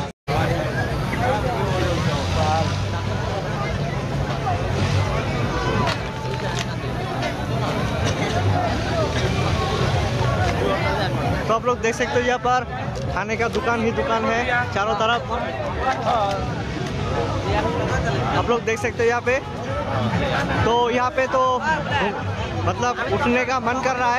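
A large crowd chatters and murmurs all around, outdoors.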